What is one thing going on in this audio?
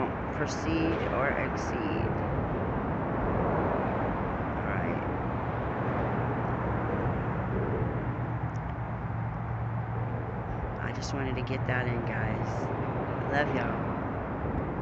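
Wind blows through tall grass outdoors.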